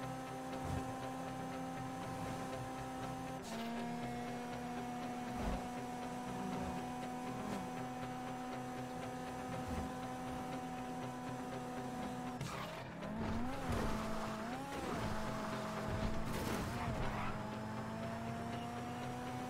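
A car engine hums steadily as the car speeds along.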